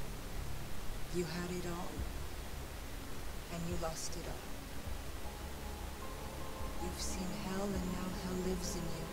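A woman speaks quietly and tearfully.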